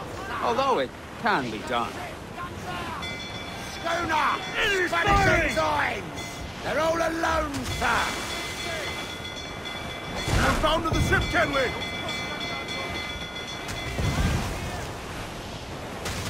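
Waves crash and spray against a ship's hull.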